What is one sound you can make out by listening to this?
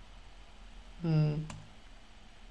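A young man makes a short vocal sound.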